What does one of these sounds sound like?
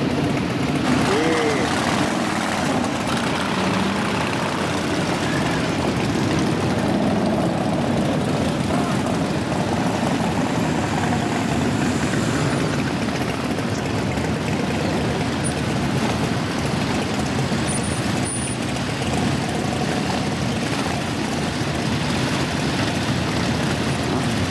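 Many motorcycle engines rumble steadily as a long procession rides past close by.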